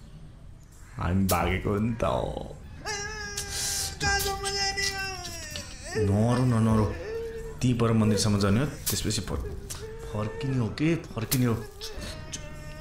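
A young man sobs and wails loudly nearby.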